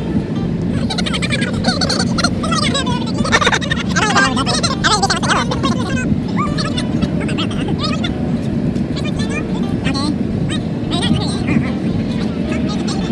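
Young men laugh and talk excitedly close by.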